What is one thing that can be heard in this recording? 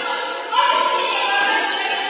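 A basketball is dribbled on a hard court floor.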